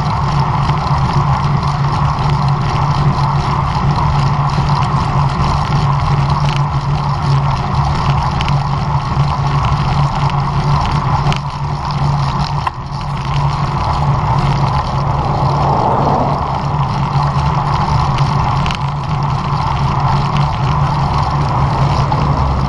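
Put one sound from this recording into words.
Bicycle tyres hum on a rough road.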